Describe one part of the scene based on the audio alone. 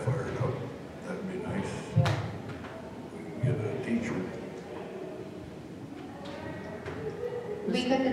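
A woman speaks calmly through a microphone, heard from across a large echoing hall.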